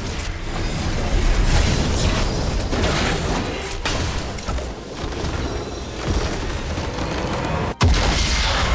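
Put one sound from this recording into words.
Spell and combat sound effects crackle and clash rapidly.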